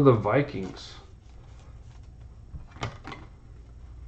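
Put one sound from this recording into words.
A plastic sleeve crinkles softly as a card is slid out of it.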